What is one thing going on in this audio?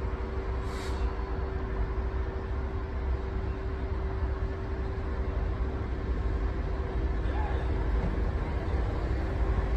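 A diesel train engine hums steadily in the distance.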